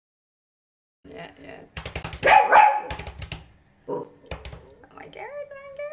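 A dog growls playfully while chewing.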